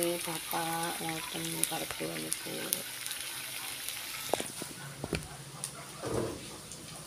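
Food sizzles and crackles in hot oil in a pan.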